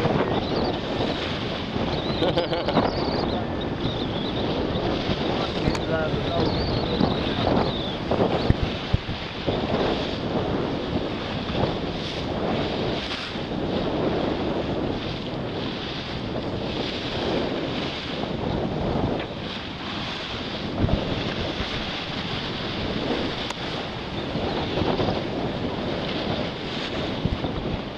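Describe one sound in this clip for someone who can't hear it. Water rushes and churns along a boat's hull.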